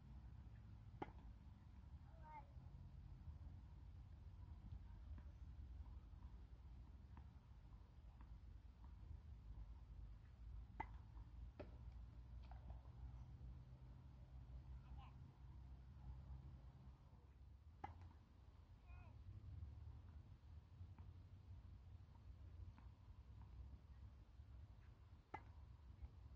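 A tennis racket strikes a ball on a serve outdoors.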